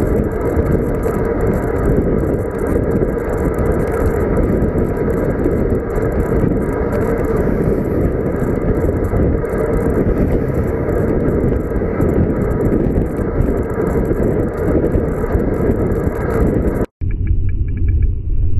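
Bicycle tyres hum on a paved road.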